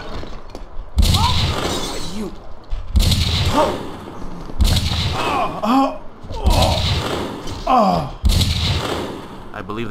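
Gunshots ring out in bursts.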